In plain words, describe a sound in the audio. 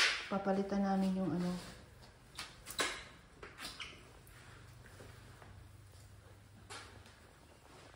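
A cloth rubs across a floor.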